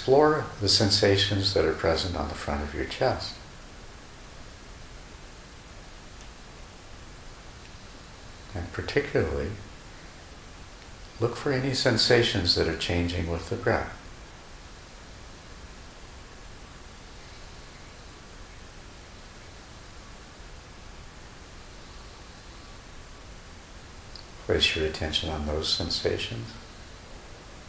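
An elderly man speaks calmly and close to a microphone, with pauses between phrases.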